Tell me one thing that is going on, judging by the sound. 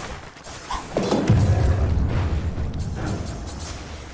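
A deep magical boom rumbles.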